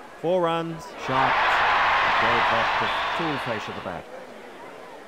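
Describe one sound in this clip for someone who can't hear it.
A large crowd cheers and roars in a stadium, then fades.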